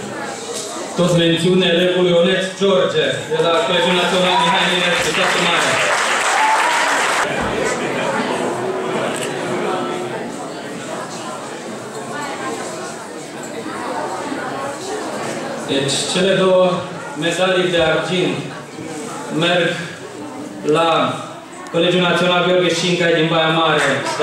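A middle-aged man speaks calmly into a microphone over loudspeakers in an echoing hall.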